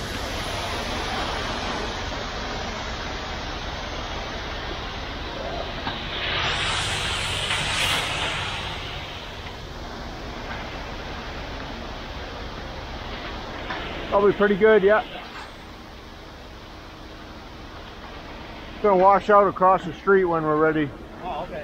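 Wet concrete slides and pours down a metal chute.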